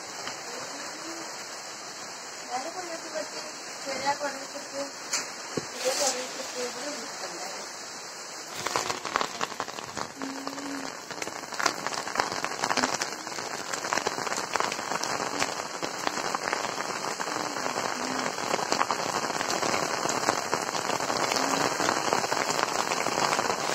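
Strong wind gusts through trees and banana leaves.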